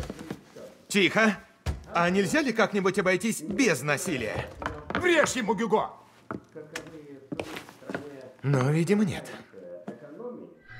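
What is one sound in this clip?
A young man speaks with animation nearby.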